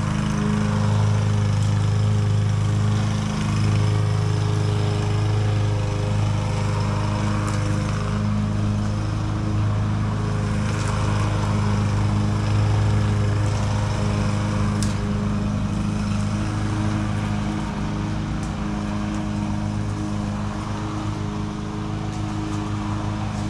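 A lawn mower engine drones steadily nearby.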